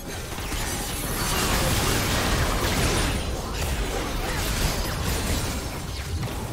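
Game spell effects whoosh, crackle and burst in a busy battle.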